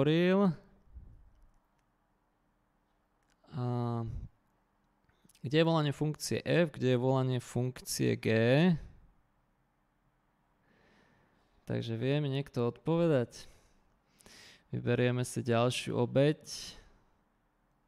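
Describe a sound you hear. A man talks calmly and explains, close to a microphone, with pauses.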